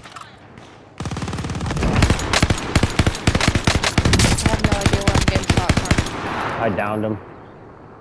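A light machine gun fires rapid bursts.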